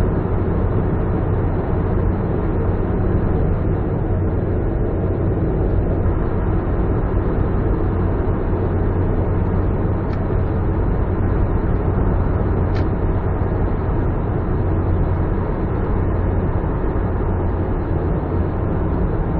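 Tyres rumble steadily on the road inside a tunnel.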